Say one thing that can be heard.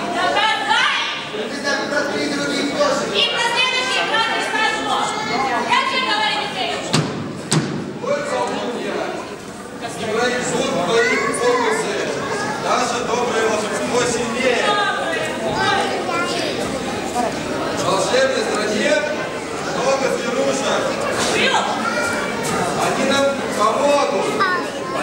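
Adult actors speak and call out lines with animation in a large echoing hall.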